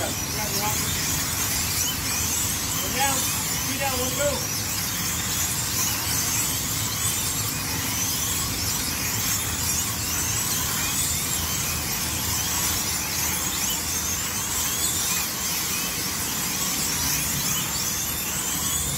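Slot cars whine steadily as they speed around a track.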